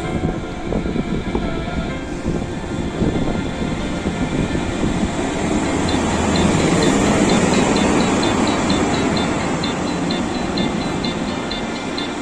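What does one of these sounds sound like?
A diesel locomotive rumbles loudly as it pulls in close by.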